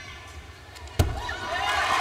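A gymnast lands on a mat with a sudden thud.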